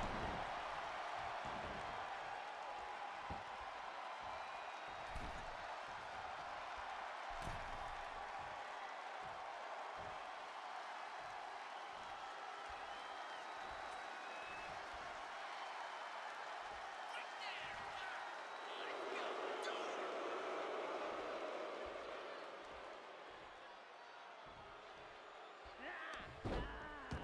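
A large crowd cheers and roars steadily in an echoing arena.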